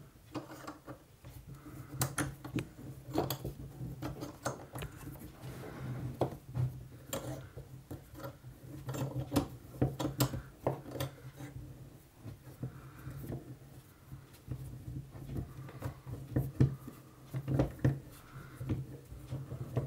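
Metal parts click and clank as they are handled and turned.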